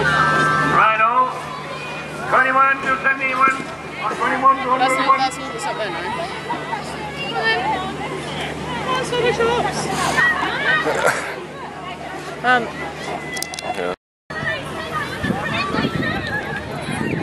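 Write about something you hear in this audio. Children shriek and call out in play nearby.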